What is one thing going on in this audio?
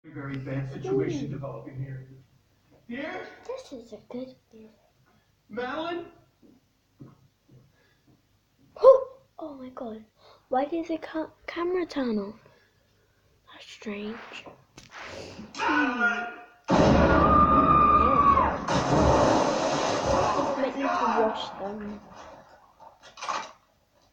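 A young girl talks animatedly close to the microphone.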